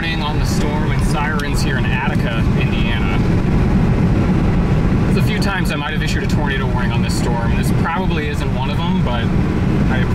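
A car's tyres hum steadily on a paved road.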